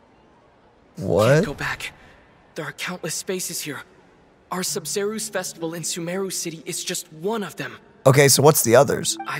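A young man talks animatedly, close to a microphone.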